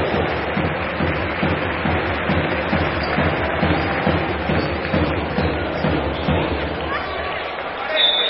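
A basketball bounces steadily on a hard court.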